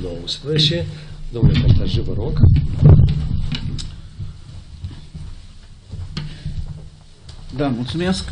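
An elderly man speaks calmly through a microphone on an online call.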